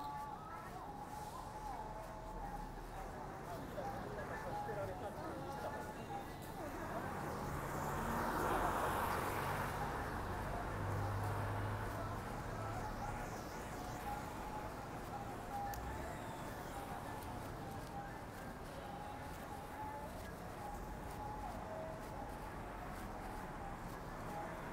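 Traffic hums along a city street outdoors at night.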